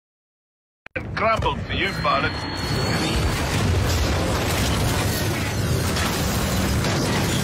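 Gunfire and explosions rumble loudly.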